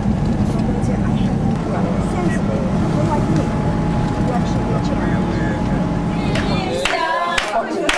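A bus engine rumbles steadily while driving.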